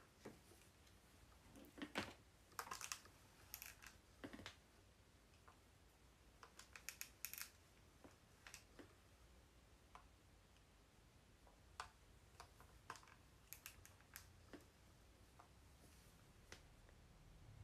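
A hair straightener clicks and clacks in short sharp knocks.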